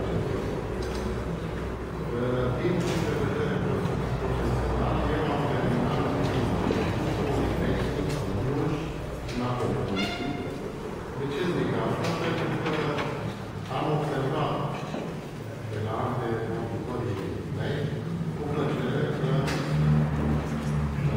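A man speaks at length to an audience in a large echoing hall.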